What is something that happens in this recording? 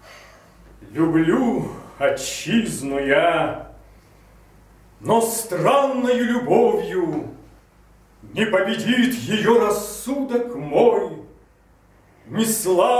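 A man sings loudly and close by, in short phrases with pauses.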